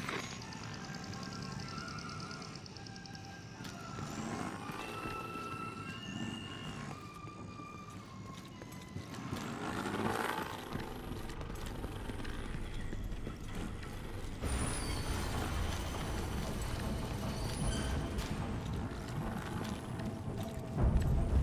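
A small drone hums steadily as it hovers close by.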